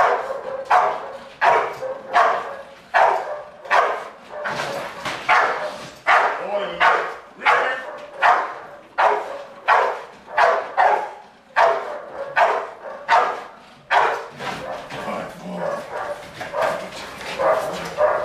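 A dog barks loudly and repeatedly, echoing.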